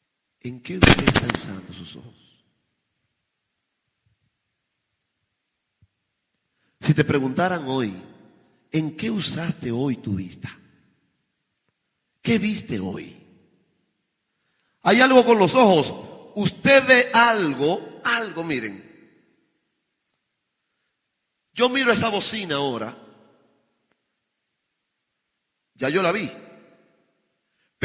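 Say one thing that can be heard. A man preaches with passion into a microphone, in short bursts with pauses.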